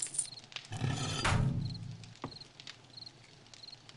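A fire crackles in a hearth.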